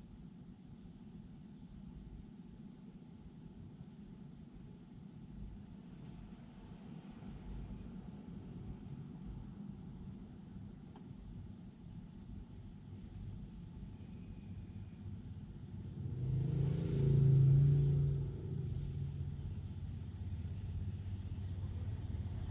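Car engines idle and hum low and steady.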